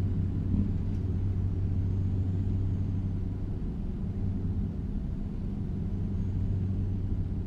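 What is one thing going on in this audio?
A car passes by.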